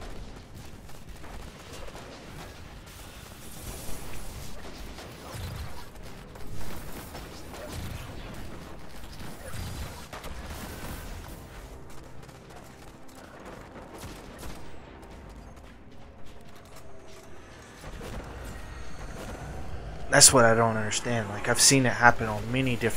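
Gunfire and energy blasts crack and boom in quick bursts.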